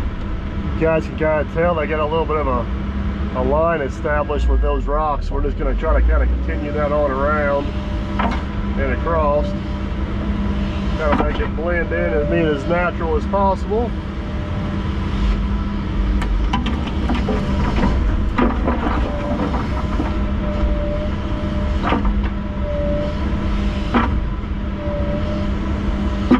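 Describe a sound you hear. An excavator engine hums steadily close by.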